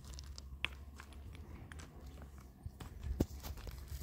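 Stones clink and scrape on rocky ground.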